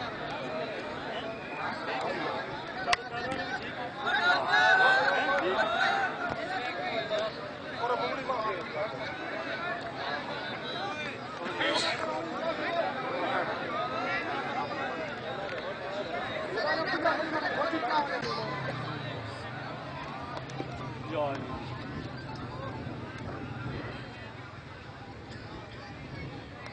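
Several men talk loudly and excitedly close by, outdoors.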